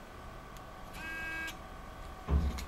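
A key card lock beeps.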